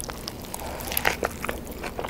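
A woman bites into a soft burger close to a microphone.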